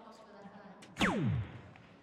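An electronic dartboard plays a falling electronic sound effect.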